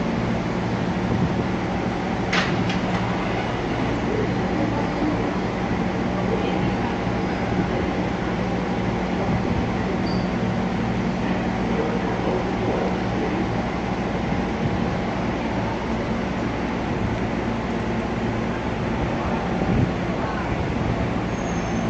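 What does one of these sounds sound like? A subway train rumbles and rattles loudly along the tracks.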